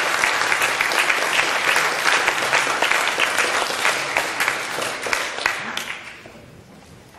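A saxophone plays loudly in a large echoing hall.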